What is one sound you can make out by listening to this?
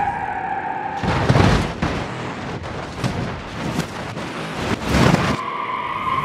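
Vehicles crash with loud metallic crunching and banging.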